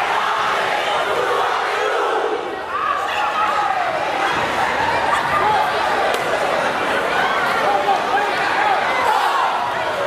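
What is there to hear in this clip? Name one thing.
A brass band plays loudly in a large echoing hall.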